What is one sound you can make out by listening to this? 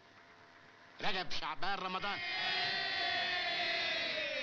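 A crowd of men shouts and cheers loudly.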